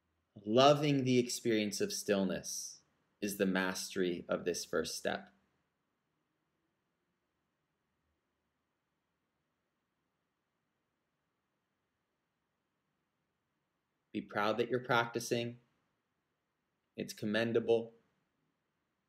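A man speaks calmly and close to a microphone, with long pauses.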